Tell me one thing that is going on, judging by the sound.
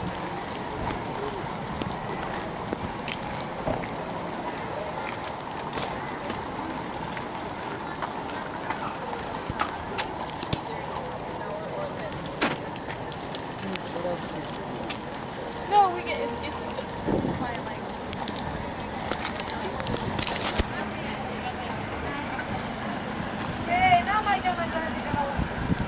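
Traffic hums steadily on an open street.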